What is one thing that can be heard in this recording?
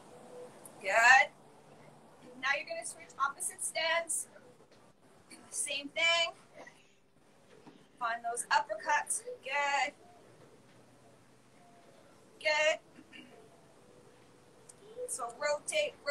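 A woman speaks with animation in short bursts, heard over an online call.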